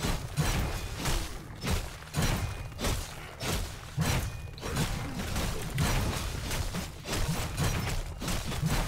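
Game combat effects crackle and burst rapidly.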